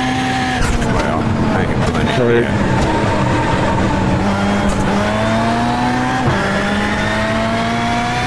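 A race car engine roars steadily, its pitch shifting up and down with gear changes.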